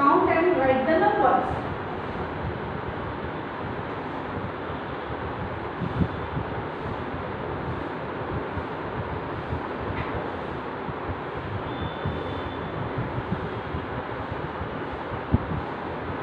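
A cloth rubs against a chalkboard as a woman wipes it.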